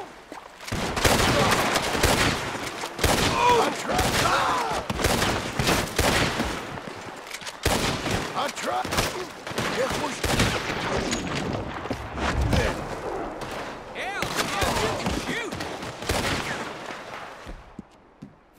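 Rifle shots ring out in rapid bursts, echoing outdoors.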